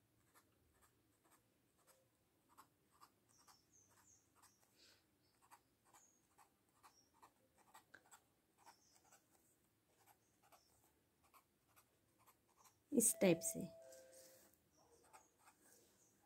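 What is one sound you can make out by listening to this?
A pen taps and scratches on paper in short quick strokes.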